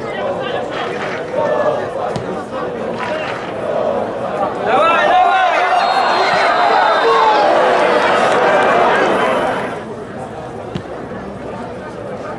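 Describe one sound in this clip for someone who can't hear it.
A large crowd chants and cheers in an open stadium.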